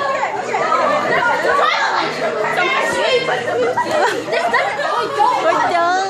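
A young girl laughs loudly close by.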